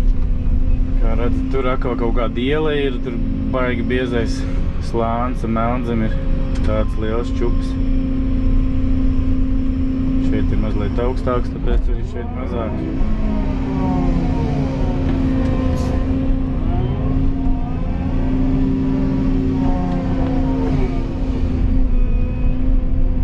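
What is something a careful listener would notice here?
A man speaks calmly from close by inside the cab.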